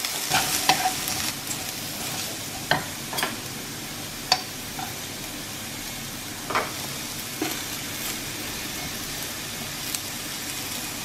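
Chopsticks and a wooden spatula knock and scrape against a pan.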